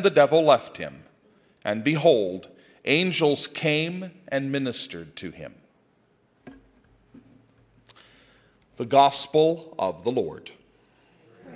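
A middle-aged man speaks through a microphone in an echoing hall, reading out in a chanting voice.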